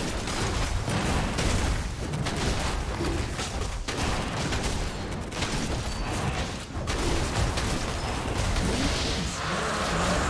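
Video game combat effects clash and crackle with rapid hits.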